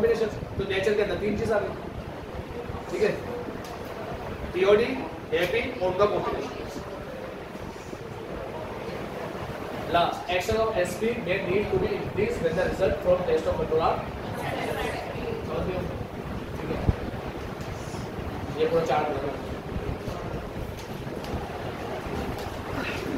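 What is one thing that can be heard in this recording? A young man lectures calmly into a close microphone.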